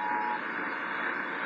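A small radio gives a short beep.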